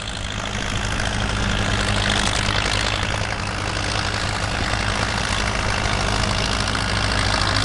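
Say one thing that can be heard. A diesel tractor engine runs with a loud, steady rumble close by.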